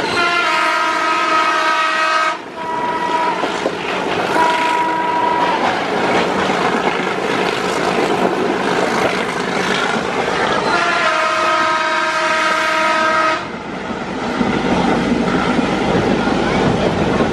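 A train rattles and rumbles along the tracks.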